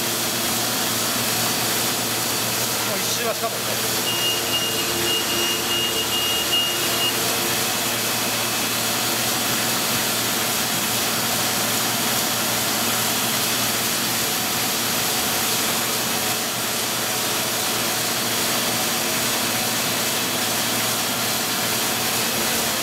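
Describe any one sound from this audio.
A printing press runs with a loud, steady mechanical roar.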